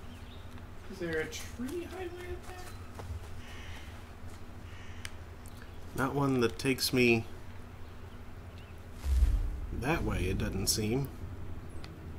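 A young man talks casually into a microphone, close up.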